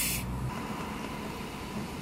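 Soda pours and fizzes into a cup.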